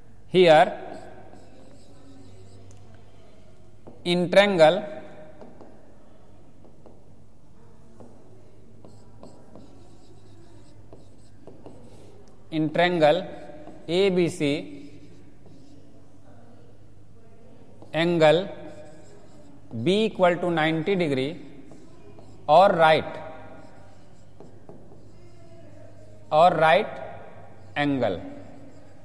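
A man speaks in short, clear bursts with pauses between.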